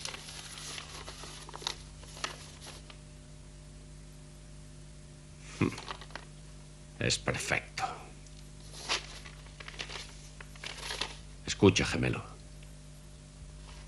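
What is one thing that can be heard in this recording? Paper rustles as it is unfolded and handled.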